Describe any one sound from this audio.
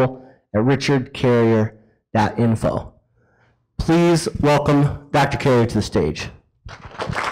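A man speaks into a microphone with animation, heard through a loudspeaker in a large room.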